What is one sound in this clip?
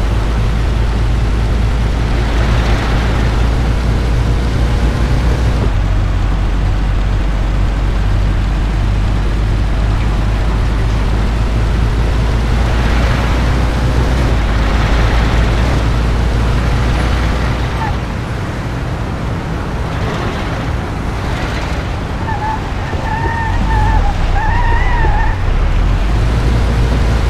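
An old car engine rumbles steadily as it drives.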